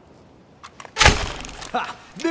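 A shotgun fires with a loud bang.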